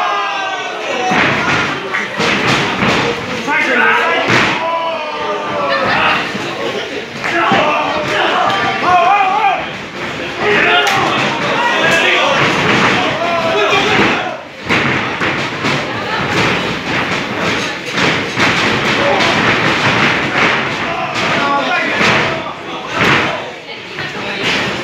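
A crowd cheers and chants loudly in an echoing hall.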